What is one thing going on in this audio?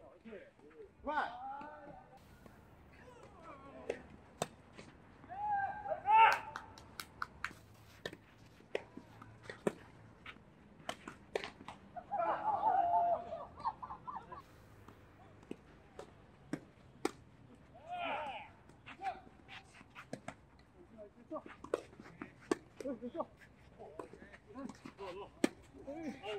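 Tennis balls pop sharply off rackets in a rally outdoors.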